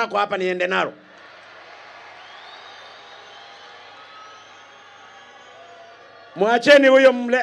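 A large crowd cheers and shouts in the distance.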